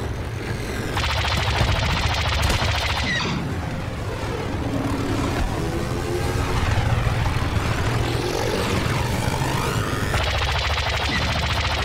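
Laser cannons fire in rapid bursts.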